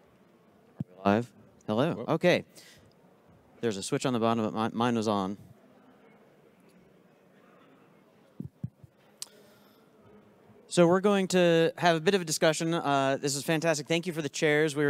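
A young man speaks into a microphone over loudspeakers in a large hall, pausing between phrases.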